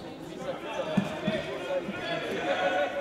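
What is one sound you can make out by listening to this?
A football thumps off a player's foot.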